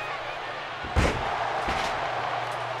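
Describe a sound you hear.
A body thuds onto a wrestling mat.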